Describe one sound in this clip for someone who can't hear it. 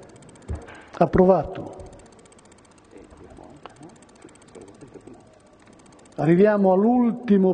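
An elderly man speaks calmly into a microphone in an echoing hall.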